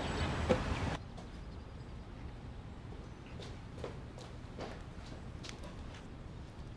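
Footsteps tap on a hard floor indoors.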